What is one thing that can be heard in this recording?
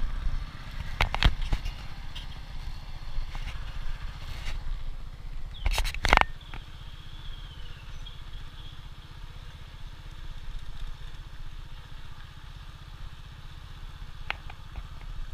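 Tyres rattle and knock over a bumpy dirt road.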